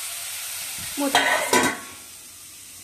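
A metal lid clatters onto a metal pot.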